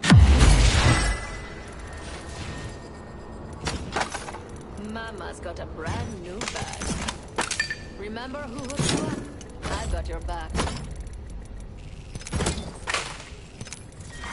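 Short game menu clicks and chimes sound as items are picked up.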